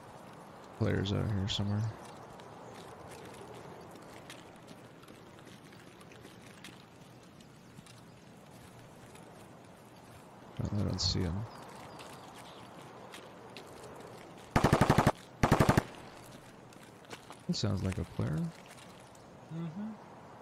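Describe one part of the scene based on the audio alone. Footsteps crunch on gravel at a steady walking pace.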